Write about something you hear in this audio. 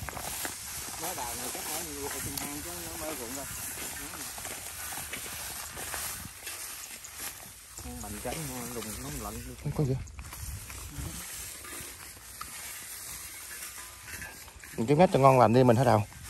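A man speaks calmly close by, outdoors.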